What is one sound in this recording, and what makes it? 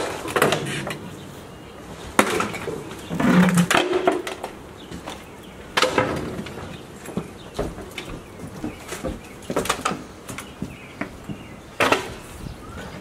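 Wooden furniture pieces knock and clatter as they are tossed onto a pile.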